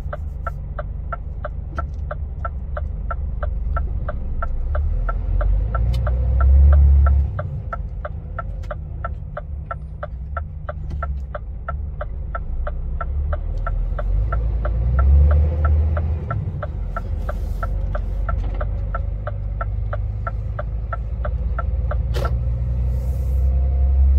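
A heavy vehicle's engine rumbles steadily and swells at times.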